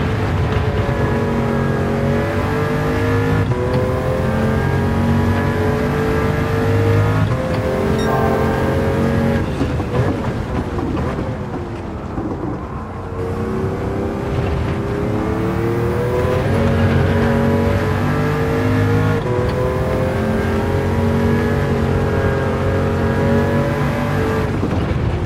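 A race car engine roars at high revs, climbing through the gears with sharp shift breaks.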